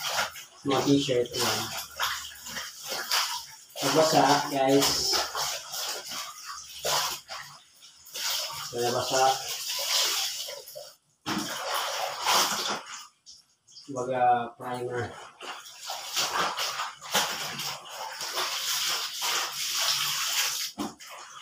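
Water sloshes and splashes as clothes are scrubbed in a basin.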